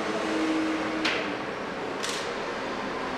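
A hand knocks lightly on a table.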